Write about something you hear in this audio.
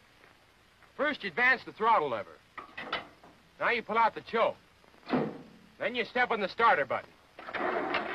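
A young man speaks in reply.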